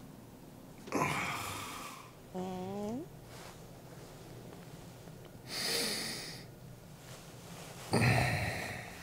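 A duvet rustles as it is lifted and shaken.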